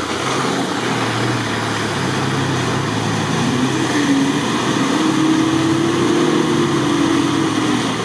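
An engine revs and labours as an off-road car drives close.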